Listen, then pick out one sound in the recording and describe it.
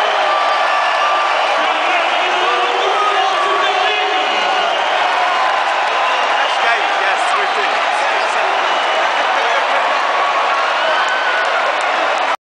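A huge stadium crowd cheers and roars loudly all around.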